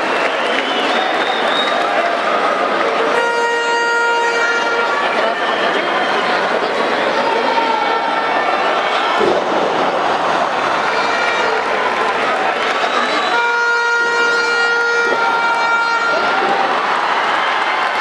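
A large crowd cheers and shouts in an echoing arena.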